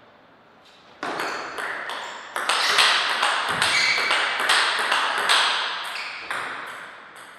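A table tennis ball bounces on a table with quick taps.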